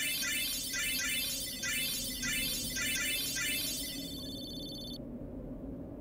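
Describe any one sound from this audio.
Rapid electronic chimes tick quickly, then stop.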